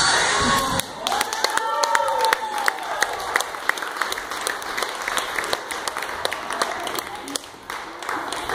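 An audience claps along in a rhythm in a hall with echo.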